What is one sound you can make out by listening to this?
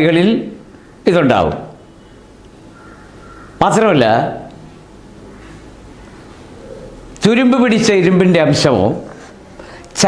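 An elderly man speaks slowly and clearly into a close microphone, in short phrases with pauses.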